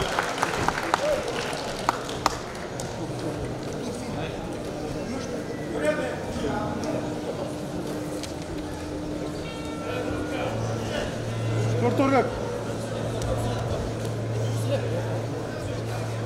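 A large indoor crowd murmurs and cheers in an echoing arena.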